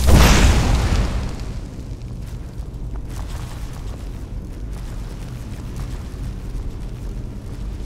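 Small flames crackle softly in both hands.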